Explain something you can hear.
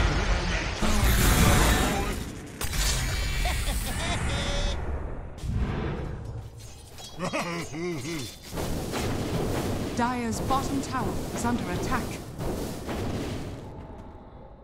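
Magic blasts and weapon hits crackle and boom in a busy battle.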